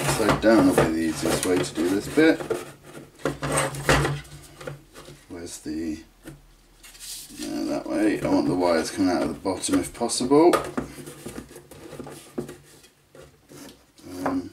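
Plastic and wooden parts knock and scrape as they are pushed together by hand.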